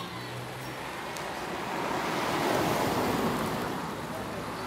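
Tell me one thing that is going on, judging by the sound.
A car drives past on a road.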